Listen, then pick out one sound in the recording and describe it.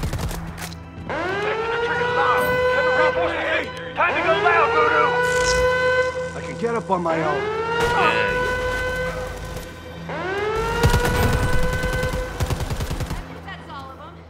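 An alarm siren wails over and over, each wail rising and then holding steady.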